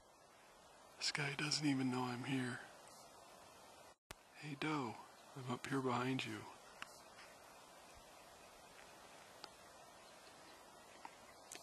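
A deer walks softly over dry ground.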